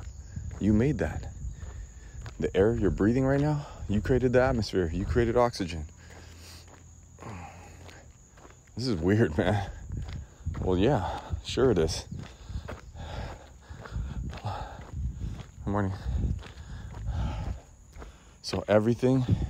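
A man speaks slowly and calmly, close by.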